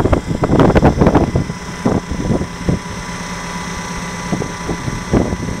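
Concrete cracks and crumbles under a hydraulic splitter.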